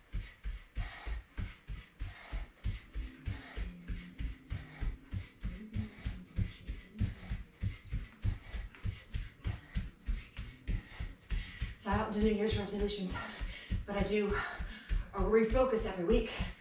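Bare feet thump rhythmically on a mat as a woman jogs in place.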